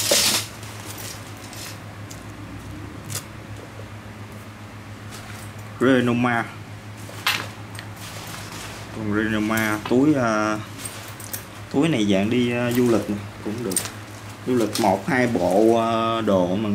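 Bag straps and buckles clink softly.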